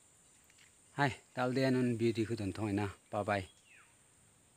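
A man speaks calmly, close up.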